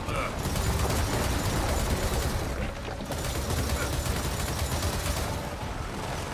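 A heavy machine gun fires in rapid, continuous bursts.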